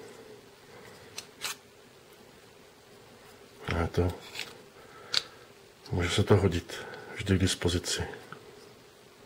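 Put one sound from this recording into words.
A hard plastic sheath clicks as a small knife is pushed in and pulled out.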